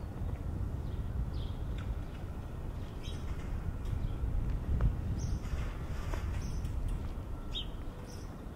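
A car drives slowly along the street close ahead.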